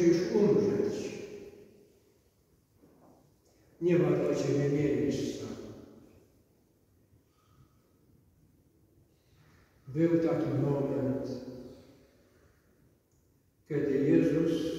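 A man chants slowly in phrases, echoing in a large reverberant hall.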